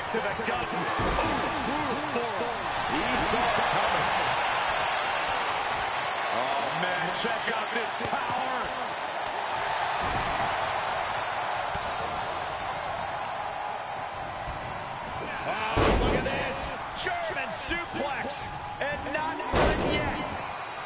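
Heavy bodies slam down hard onto a wrestling ring mat with deep thuds.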